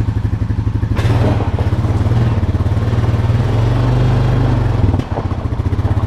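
A quad bike engine revs up and drives off, then settles back.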